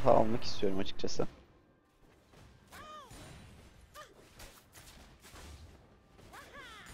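Spell effects zap and whoosh in a video game battle.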